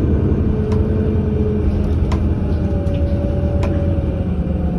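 The bus rattles and clicks as it rolls along.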